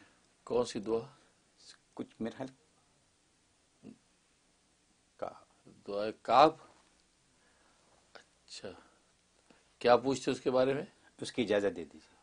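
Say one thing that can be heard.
A man speaks calmly and clearly into a microphone, in short phrases with pauses.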